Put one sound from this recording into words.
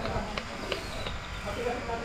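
A man pumps air into a bicycle tyre with a hand pump.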